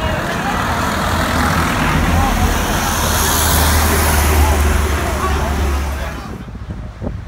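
Traffic rumbles along a busy street.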